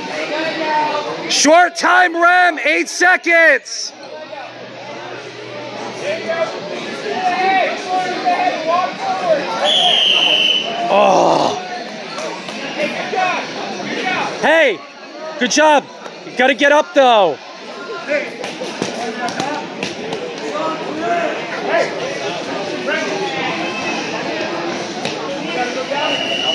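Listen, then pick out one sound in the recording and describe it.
A crowd of spectators shouts and cheers loudly in a large echoing hall.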